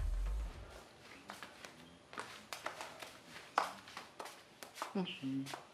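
Footsteps pad across a hard floor.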